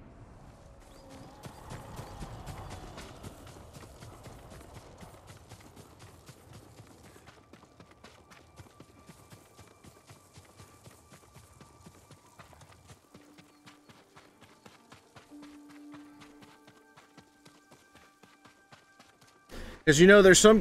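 Footsteps patter quickly over grass and stone.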